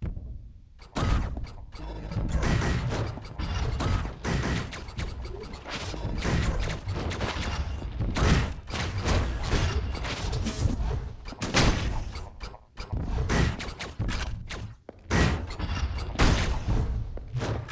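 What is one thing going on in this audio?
Rapid bursts of gunfire crackle and pop.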